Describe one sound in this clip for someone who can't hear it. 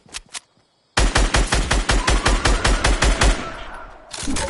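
A rifle fires in rapid bursts, loud and close.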